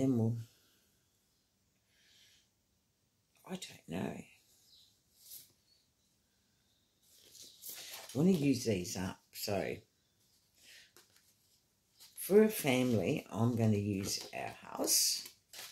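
Paper sheets rustle and crinkle as they are handled.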